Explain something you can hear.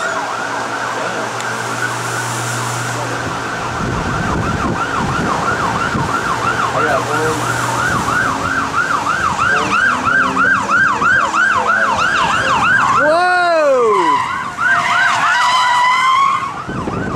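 A police car siren wails.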